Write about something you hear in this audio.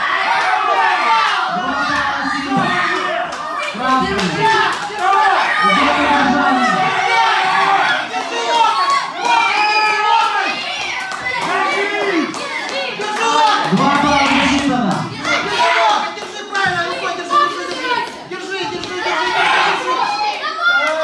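A crowd of children shouts and cheers loudly in an echoing hall.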